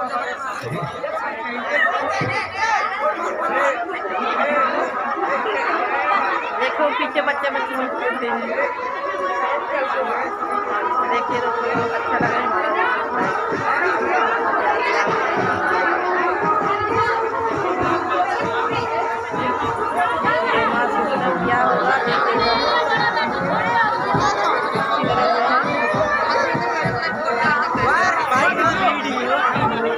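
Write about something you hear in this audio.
A woman talks close to the microphone.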